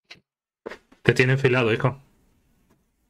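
A man speaks briefly and loudly, close to a microphone.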